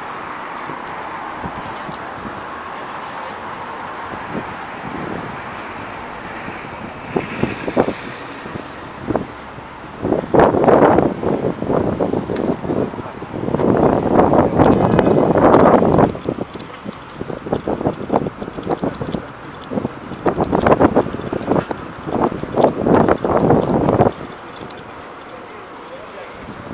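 Traffic hums steadily on a nearby road.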